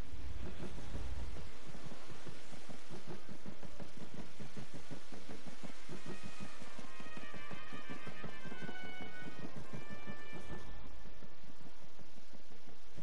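Footsteps run quickly across wooden boards.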